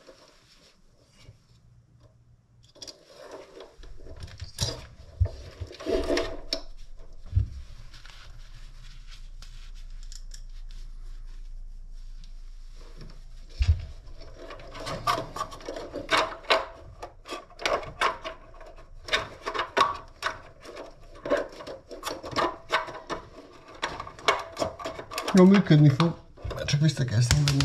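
Gloved hands click and rattle small parts.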